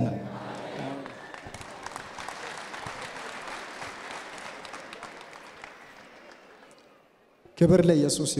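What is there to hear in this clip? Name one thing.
A large crowd applauds.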